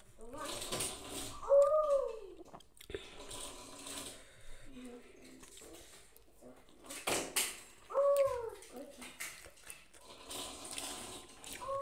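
A woman chews and smacks her lips.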